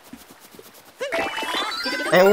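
Bright chimes sparkle upward.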